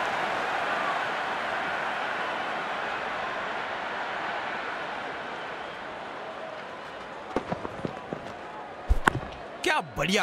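A large stadium crowd cheers and roars, then slowly fades.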